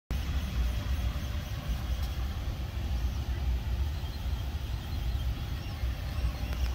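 A 3D printer hums and whirs steadily as its print head moves.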